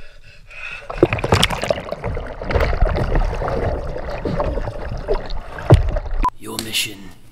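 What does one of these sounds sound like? Water churns and splashes loudly.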